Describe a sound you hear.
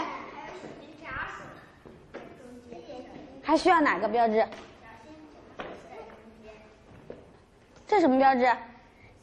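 A woman speaks clearly and calmly to children.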